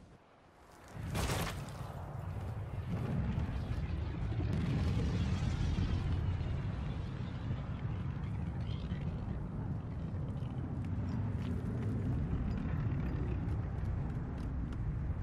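A spacecraft engine roars as it flies low overhead.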